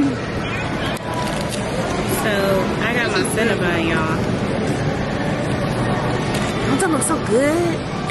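A young woman talks close by, in a lively way.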